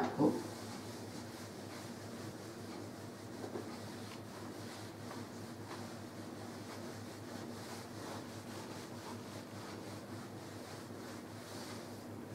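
A dry eraser rubs across a whiteboard.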